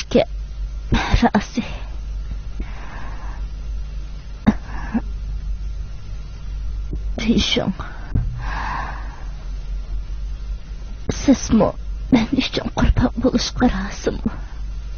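A young woman speaks weakly and breathlessly, close by.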